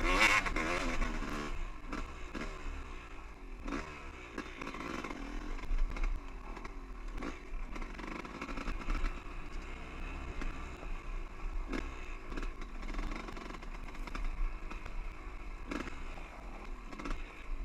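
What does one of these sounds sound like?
Tyres crunch and bump over rocky ground.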